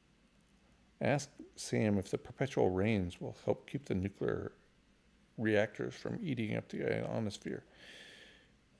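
A middle-aged man reads aloud calmly into a close microphone.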